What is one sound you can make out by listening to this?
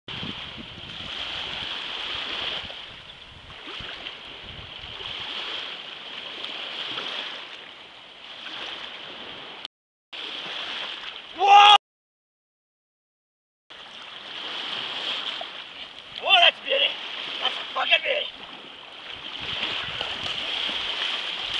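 Waves wash and lap over rocks.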